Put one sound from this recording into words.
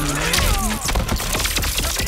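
Electricity crackles around a fighter in a fighting game.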